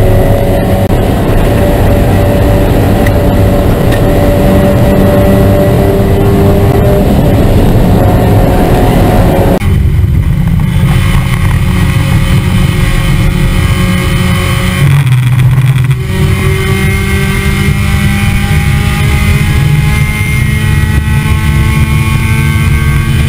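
A race car engine roars loudly up close, rising and falling as it shifts gears.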